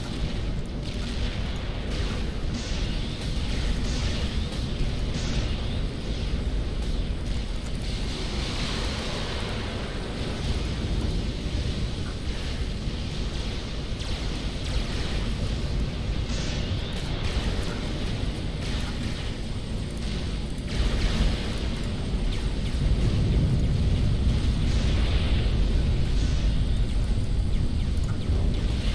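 Weapons fire and explosions rumble steadily in a noisy battle.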